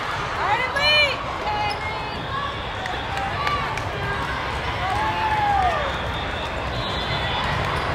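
A crowd murmurs and chatters throughout.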